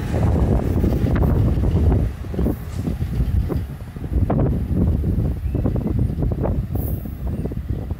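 Another train approaches on a nearby track with a low rumble.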